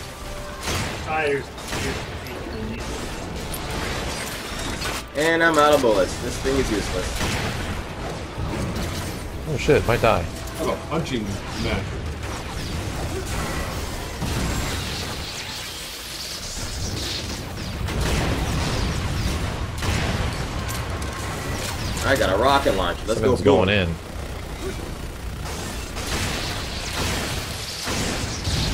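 Gunfire and explosions crackle in a game.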